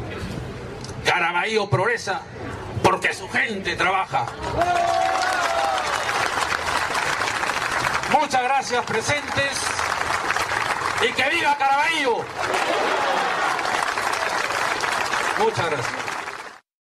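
A middle-aged man speaks firmly and with emphasis into a microphone, heard through a loudspeaker outdoors.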